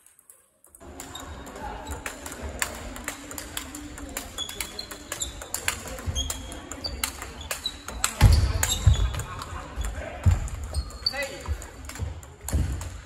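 Balls from other tables click in the background of a large echoing hall.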